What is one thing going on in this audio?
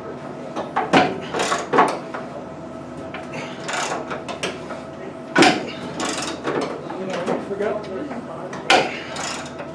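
Metal parts clank against an aircraft's metal frame inside the fuselage.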